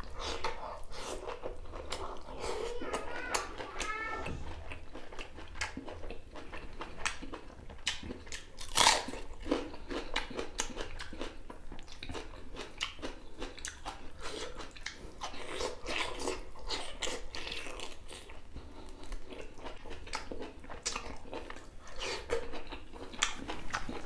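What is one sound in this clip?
A man chews and crunches food loudly and wetly, very close to a microphone.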